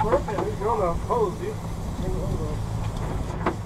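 A man calls out loudly nearby.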